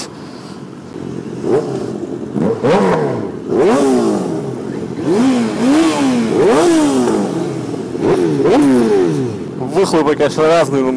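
Other motorcycle engines idle and rev nearby.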